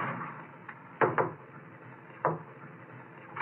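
A window latch clicks and rattles.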